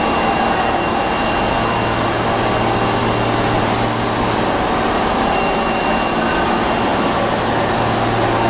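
An electric subway train hums while standing at the platform in an underground station.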